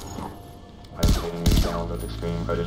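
A gun fires a few sharp shots.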